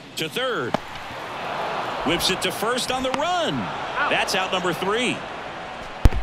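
A stadium crowd cheers.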